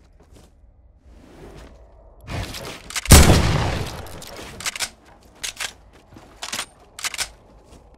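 Wooden planks slam into place with loud thuds.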